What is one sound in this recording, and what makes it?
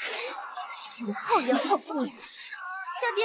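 A young woman speaks fiercely and angrily.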